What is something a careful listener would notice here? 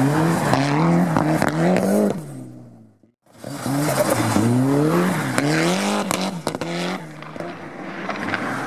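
A car engine revs hard and rises and falls in pitch.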